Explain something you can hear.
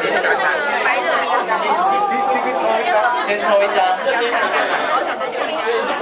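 A woman talks and laughs nearby.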